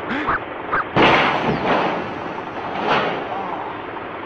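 A heavy crane load falls and crashes onto a parked car.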